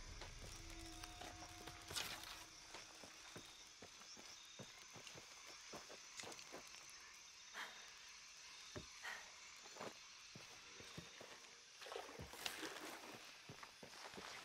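Footsteps crunch softly on dirt and leaves.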